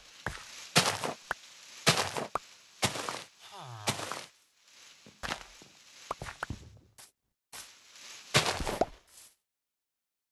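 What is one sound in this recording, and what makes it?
Dry straw crunches and rustles in quick bursts as hay bales are broken apart.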